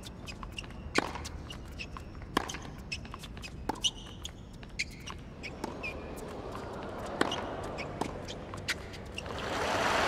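Tennis balls are struck back and forth with sharp pops.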